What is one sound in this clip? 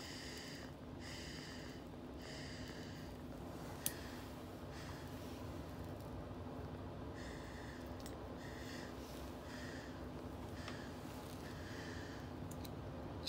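A torch lighter hisses in short bursts.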